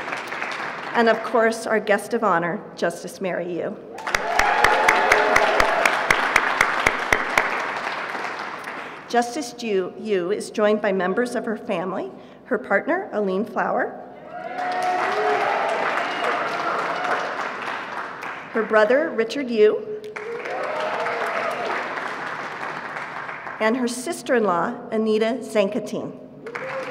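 A woman speaks through a microphone in a large room, pausing often.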